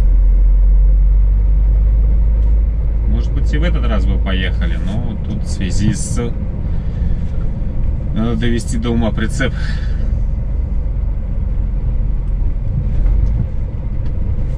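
A vehicle engine rumbles steadily while driving along a road.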